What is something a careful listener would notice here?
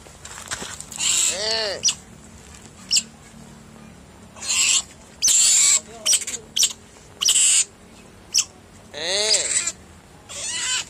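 A small animal squeals and chirps loudly in sharp bursts.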